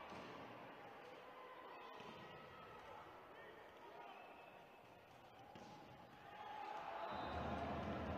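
A crowd murmurs and cheers in a large echoing hall, growing louder toward the end.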